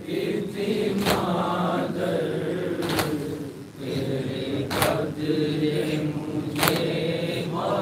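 Men beat their chests in a slow, steady rhythm.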